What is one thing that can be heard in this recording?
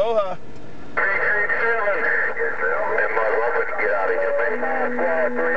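A second man talks through a radio loudspeaker, crackly and muffled.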